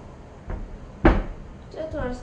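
Glass knocks against a counter.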